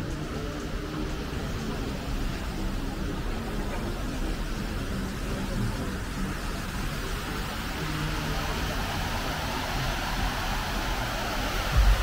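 A fountain splashes and gushes steadily.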